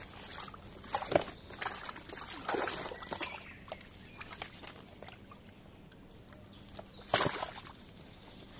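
A net brushes and rustles against a bucket.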